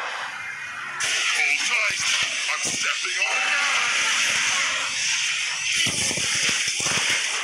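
Magic blasts and hits crackle and crash in a fight.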